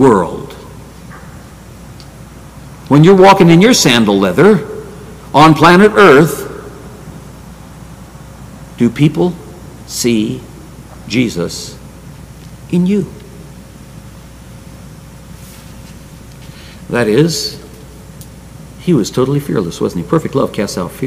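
An older man speaks slowly and emphatically into a microphone, with long pauses, in an echoing hall.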